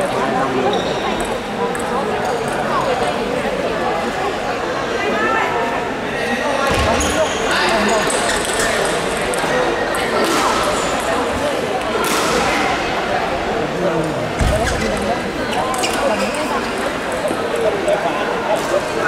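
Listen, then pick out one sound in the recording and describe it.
A crowd chatters throughout in a large echoing hall.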